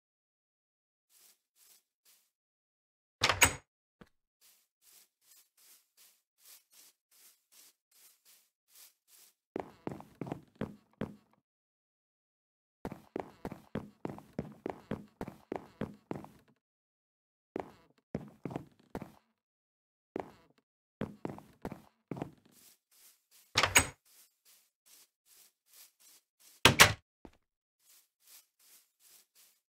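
Footsteps tread steadily over grass.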